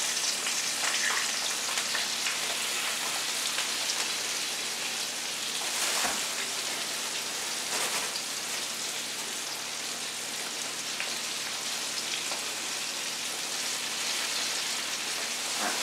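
A paper bag rustles and crinkles as items are pulled from it.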